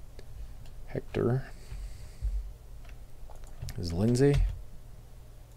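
A man speaks briefly into a nearby microphone.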